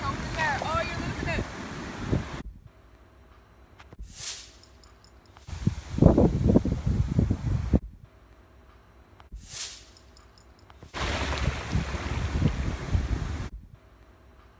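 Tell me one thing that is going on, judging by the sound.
A wave washes up over sand and recedes with a foamy hiss.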